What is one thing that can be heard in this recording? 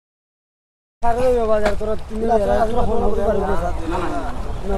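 Men talk with animation nearby outdoors.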